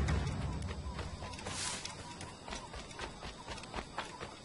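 Footsteps thud quickly across soft ground.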